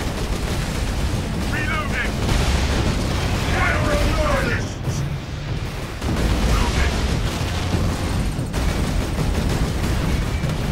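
Heavy rumbling battle noise roars steadily.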